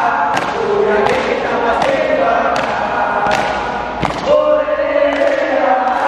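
A group of young men sings together in chorus.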